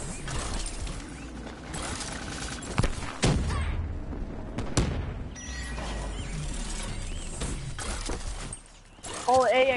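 Explosions boom nearby, one after another.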